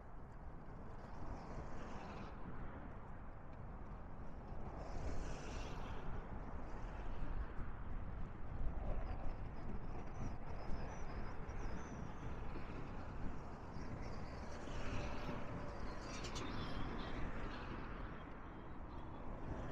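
Cars drive past on a road nearby.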